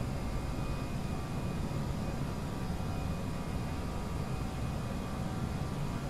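Wheels rumble over the runway.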